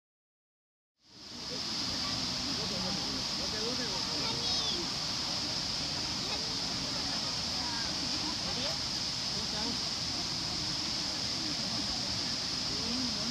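A waterfall roars steadily outdoors.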